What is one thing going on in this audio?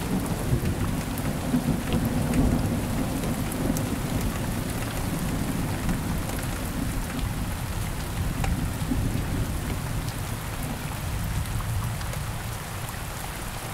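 Thunder rumbles low in the distance.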